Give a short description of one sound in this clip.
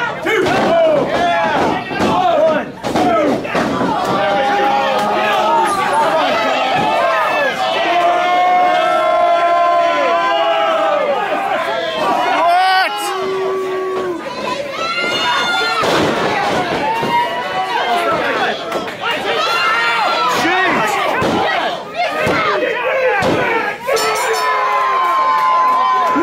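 A crowd of men and women shouts and cheers loudly in an echoing hall.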